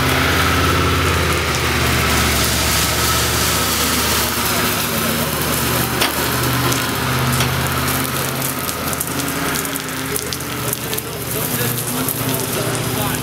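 A wash machine motor hums steadily.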